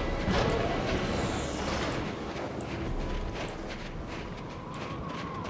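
Wind blows steadily across snow.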